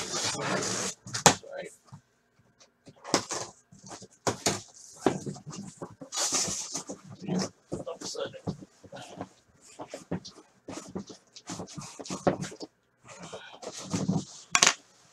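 Objects knock and thud against a tabletop.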